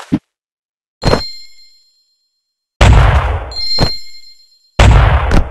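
Coins chime with a bright ring.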